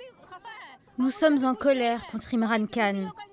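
A middle-aged woman speaks with emotion close to a microphone.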